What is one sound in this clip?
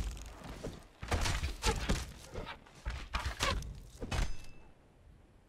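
A blade swishes and strikes flesh with heavy thuds.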